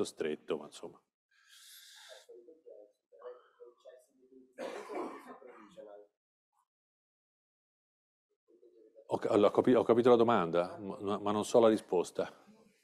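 A man gives a lecture through an online call, speaking calmly with pauses.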